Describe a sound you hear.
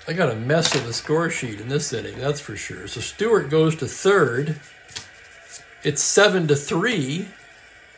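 Paper cards slide and rustle on a table.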